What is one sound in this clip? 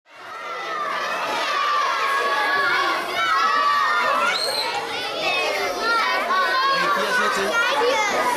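A crowd of children chatter and call out excitedly, close by.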